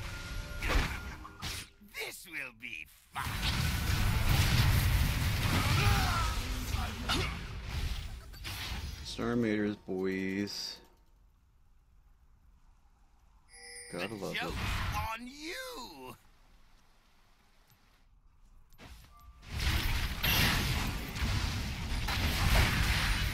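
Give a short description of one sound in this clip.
Game sound effects of fighting and spells crash and whoosh.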